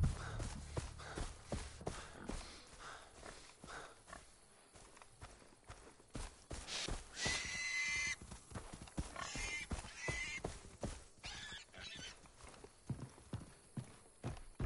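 A young man speaks quietly into a headset microphone.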